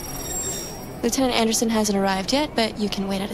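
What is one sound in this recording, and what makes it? A young woman speaks calmly and politely, heard through speakers.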